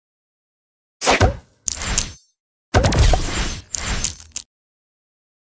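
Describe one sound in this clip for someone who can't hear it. Game gems burst with sparkling crackles and swooshes.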